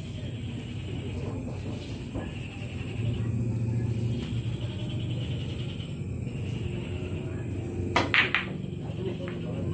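Several men chatter in the background.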